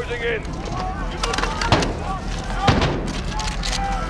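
Gunshots ring out sharply and echo.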